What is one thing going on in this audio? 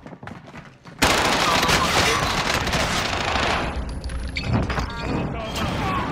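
Rapid gunfire rattles loudly at close range.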